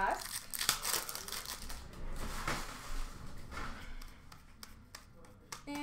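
Foil card packs crinkle and rip as hands tear them open.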